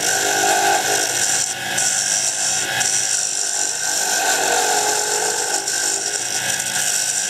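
A wood lathe spins at speed.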